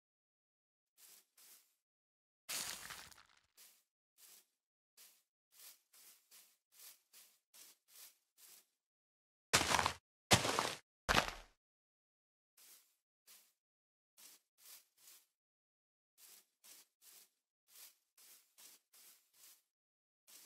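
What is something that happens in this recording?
Footsteps crunch steadily on grass.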